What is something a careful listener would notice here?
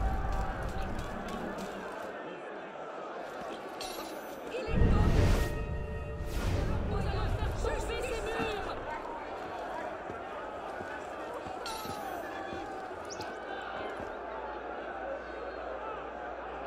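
A crowd murmurs and chatters in the street below.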